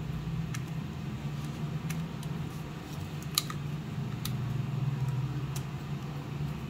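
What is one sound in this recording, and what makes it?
Plastic parts and wires rustle and knock in a hand.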